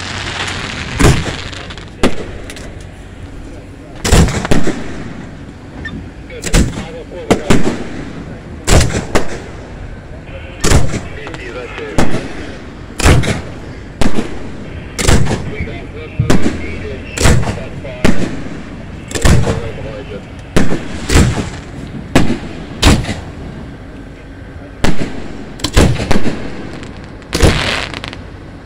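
Fireworks bang loudly again and again outdoors.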